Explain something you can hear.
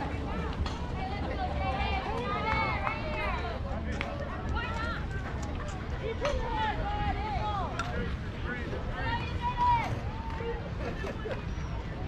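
Young girls call out and cheer from across an open field.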